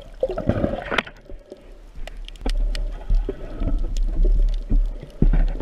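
A diver's breathing bubbles gurgle and rumble close by underwater.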